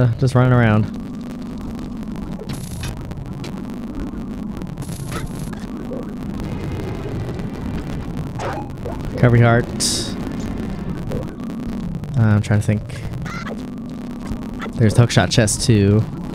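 Steady video game music plays throughout.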